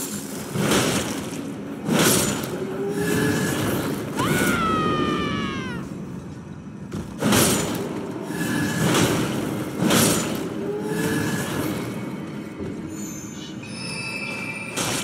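A heavy hammer smashes into bony foes with loud crunching blows.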